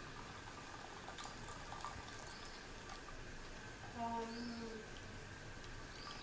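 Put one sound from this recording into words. Liquid pours from a jug into a bowl with a steady trickle.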